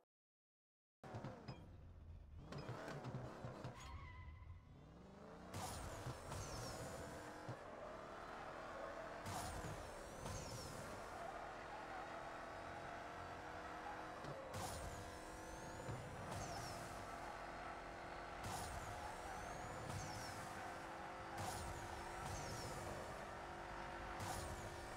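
A car engine roars and climbs in pitch again and again as it speeds up through the gears.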